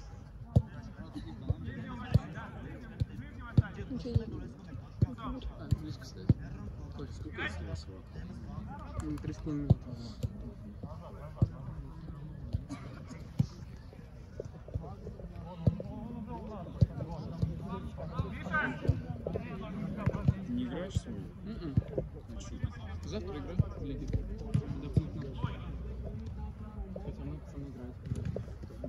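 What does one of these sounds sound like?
A football is kicked with sharp thuds now and then.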